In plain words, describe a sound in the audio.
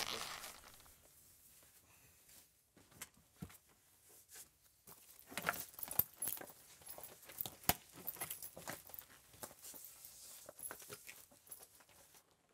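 Clothing rustles as a man pulls off a shirt.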